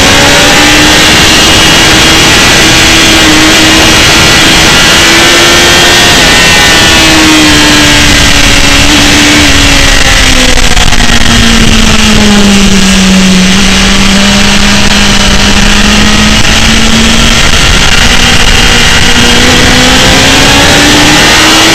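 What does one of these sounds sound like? A motorcycle engine roars loudly, its pitch rising and falling as the rider shifts and leans through bends.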